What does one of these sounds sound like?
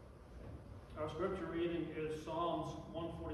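A piano plays.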